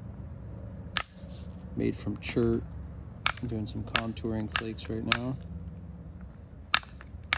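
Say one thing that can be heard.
A stone scrapes and taps against an antler.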